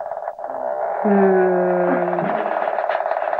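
A toddler laughs loudly and happily close by.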